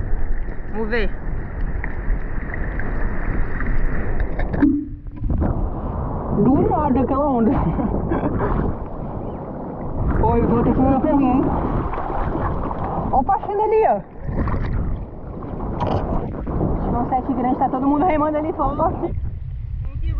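Water sloshes and laps close by.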